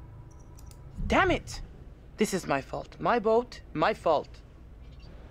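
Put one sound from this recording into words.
A woman speaks with emotion.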